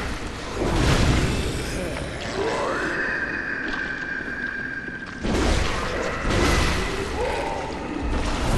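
A blade slashes and strikes with heavy, wet thuds.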